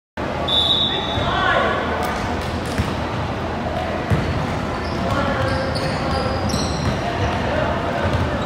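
Children shout and call out in a large echoing gym.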